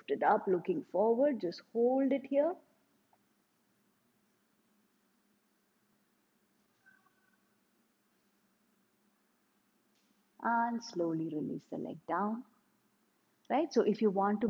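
A woman speaks calmly and clearly, giving instructions.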